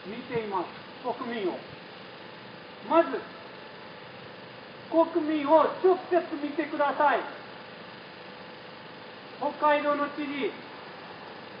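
A man speaks in short, loud bursts nearby.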